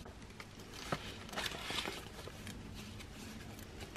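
A plastic envelope crinkles as it is handled.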